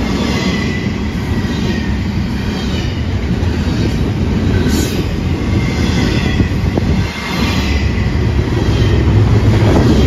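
Steel wheels screech and squeal on the rails.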